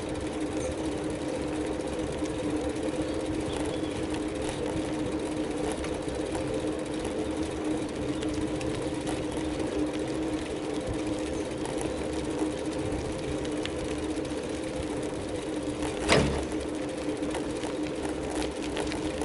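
A vehicle engine hums steadily while driving along a road.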